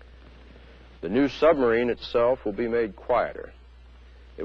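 A middle-aged man speaks slowly and gravely, close to a microphone.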